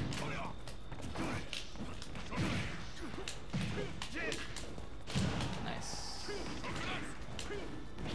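Punches and kicks from a fighting game thump and crack.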